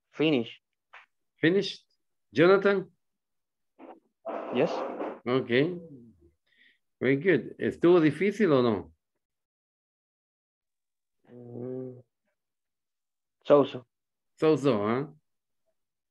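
A man speaks over an online call, in short bursts with pauses.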